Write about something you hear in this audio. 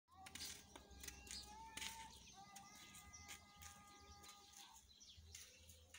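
A man's footsteps scuff softly on sandy ground.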